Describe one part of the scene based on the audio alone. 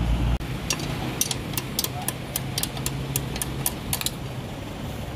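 Metal tools clink sharply in quick taps.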